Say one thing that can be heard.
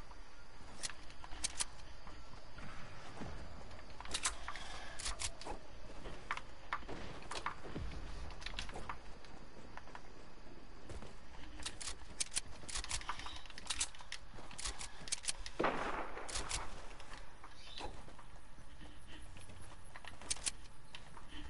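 Footsteps tap quickly on hard ground and grass.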